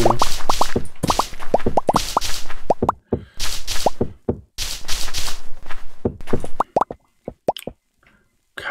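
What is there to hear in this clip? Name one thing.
A pickaxe chips at stone in a video game, with sharp repeated knocks.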